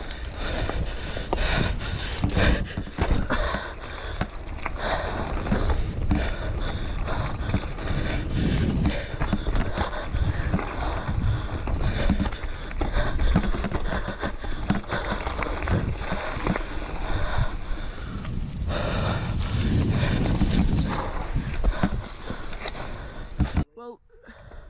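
Bicycle tyres rumble and crunch over a bumpy dirt trail.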